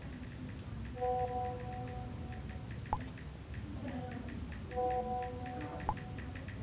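A phone chimes with incoming message tones.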